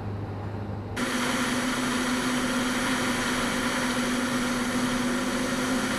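Wind rushes loudly past the outside of an aircraft.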